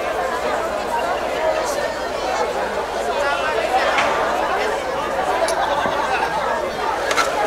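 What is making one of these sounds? A crowd of men and women chatter outdoors all around.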